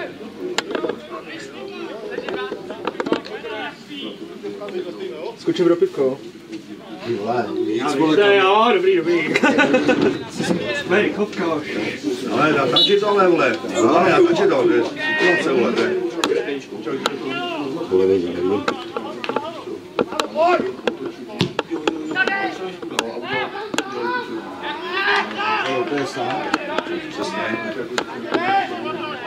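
Men's voices shout and call across an open playing field.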